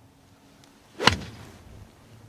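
A golf club strikes a ball with a sharp crack outdoors.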